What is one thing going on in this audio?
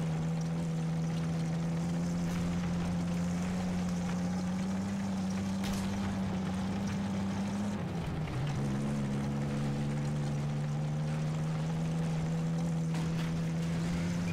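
A tank engine rumbles steadily, briefly dropping in pitch.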